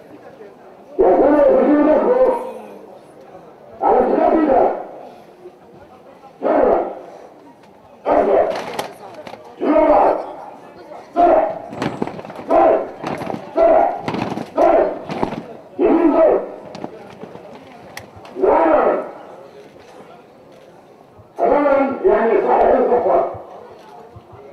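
A crowd of boys chants loudly together in short bursts, outdoors.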